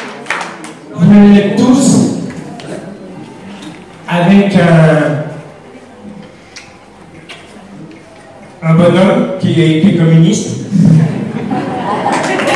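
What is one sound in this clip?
A man speaks calmly into a microphone, heard through loudspeakers in an echoing hall.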